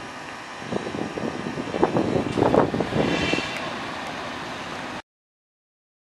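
Heavy machinery rumbles and clanks outdoors.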